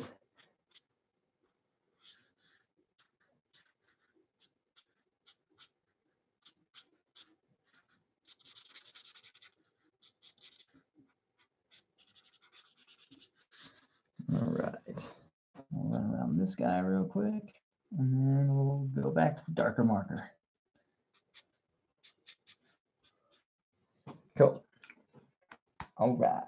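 A felt marker squeaks and scratches across paper in short strokes.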